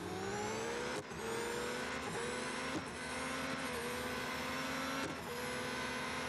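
A racing car engine dips briefly at each gear change.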